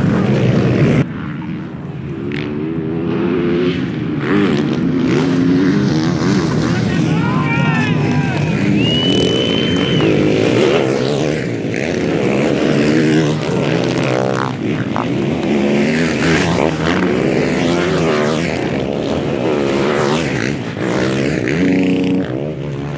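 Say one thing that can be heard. Dirt bike engines rev and whine as riders pass by.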